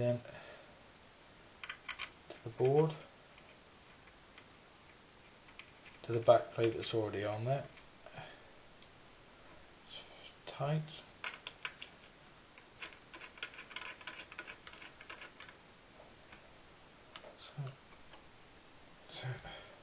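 Small plastic parts click and rattle under fingers.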